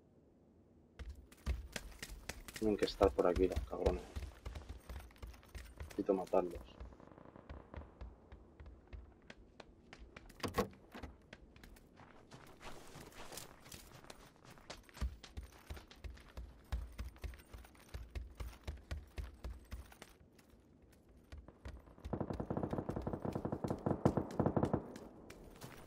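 Footsteps thud quickly across a wooden floor indoors.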